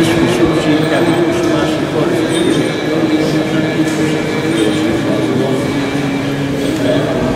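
Several men chant together in long, steady tones, echoing in a large stone hall.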